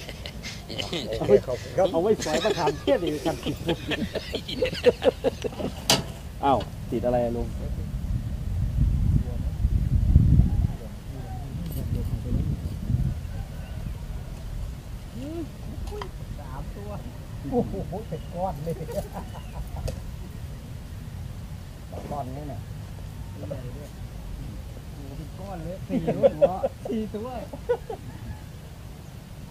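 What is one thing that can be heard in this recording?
Men talk with animation close by, outdoors.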